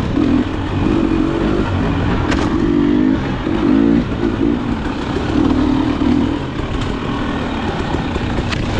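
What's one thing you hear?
A dirt bike engine revs and putters up close, rising and falling in pitch.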